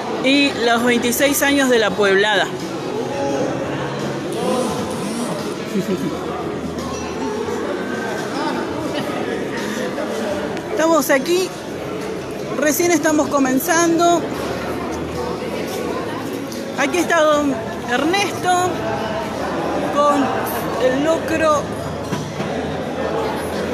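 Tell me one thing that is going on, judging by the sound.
A crowd chatters throughout a large echoing hall.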